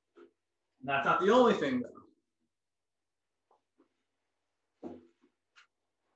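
A young man speaks briefly and with animation, close by.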